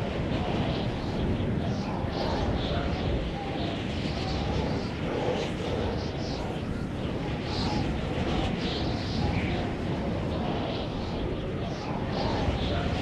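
Wind rushes steadily past in flight.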